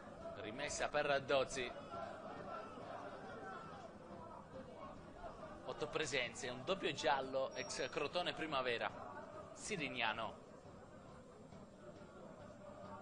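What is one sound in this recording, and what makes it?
A small crowd murmurs steadily in an open-air stadium.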